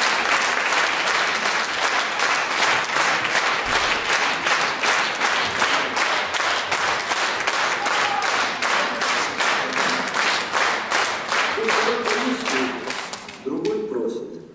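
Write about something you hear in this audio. An audience claps steadily in a large hall.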